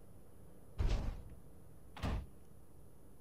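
A short game sound thumps as a structure is placed.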